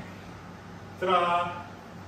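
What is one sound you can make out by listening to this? A man exclaims loudly with a drawn-out voice.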